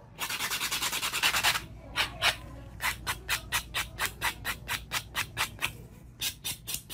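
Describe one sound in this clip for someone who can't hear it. Chalky powder scrapes and crumbles in quick, rhythmic strokes close by.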